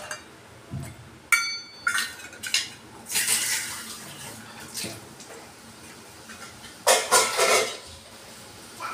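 Oil sizzles softly in a metal pan.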